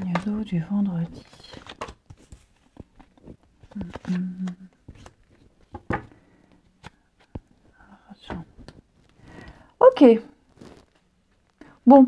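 Cards are laid down on a wooden table with soft taps.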